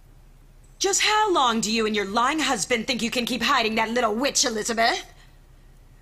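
A young woman speaks forcefully and urgently.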